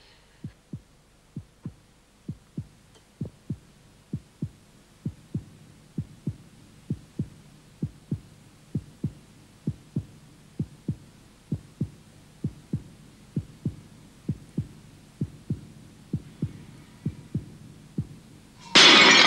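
Slow footsteps knock steadily on a stone floor in an echoing hall.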